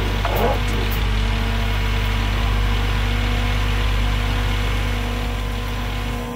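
An excavator engine hums steadily.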